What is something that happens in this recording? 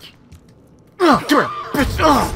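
A monster screeches loudly and shrilly.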